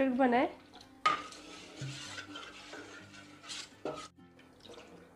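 A metal ladle scrapes and clinks against a metal bowl.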